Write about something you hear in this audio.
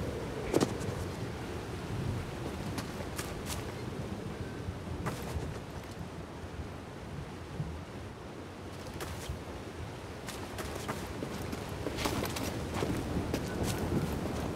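Footsteps thud on stone as a game character runs and jumps.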